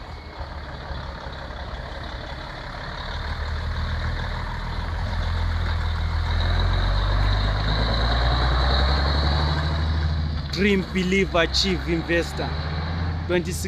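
A heavy truck engine rumbles as the truck pulls past close by and drives away.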